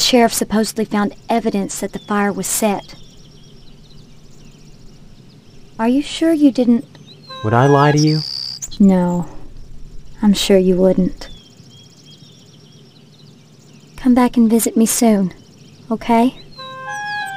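A young woman speaks calmly and clearly, close to the microphone.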